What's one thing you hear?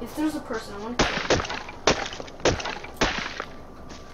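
A stone hatchet chops into a tree trunk.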